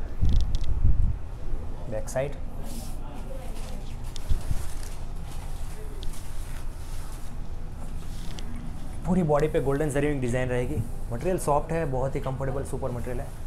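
A silk sari rustles as it is unfolded and smoothed.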